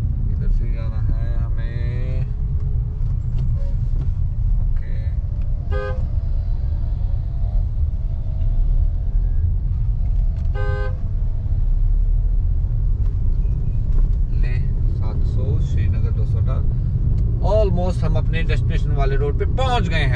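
A car engine and tyres rumble steadily on the road.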